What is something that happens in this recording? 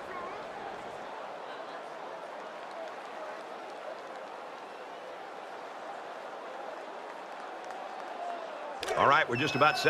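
A large crowd cheers steadily in a stadium.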